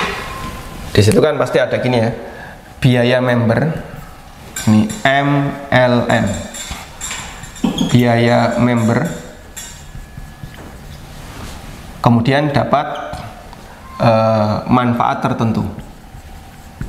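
A man lectures calmly into a microphone.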